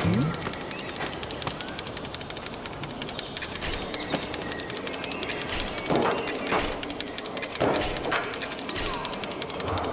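Large machine gears turn and clank.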